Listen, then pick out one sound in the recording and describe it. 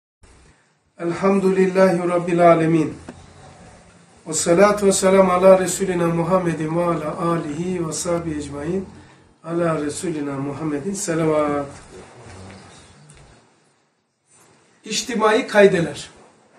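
An elderly man speaks calmly into a nearby microphone, in short phrases with pauses.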